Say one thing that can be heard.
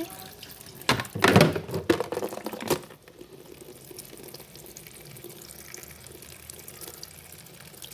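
Water pours from a tap into a tub.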